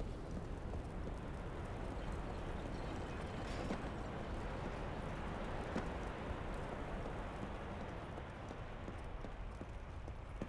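Footsteps crunch over loose bones.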